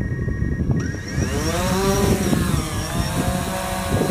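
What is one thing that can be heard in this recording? A drone's propellers whir up to speed with a rising whine.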